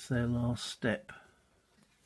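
A cardboard counter is set down with a light tap on a board.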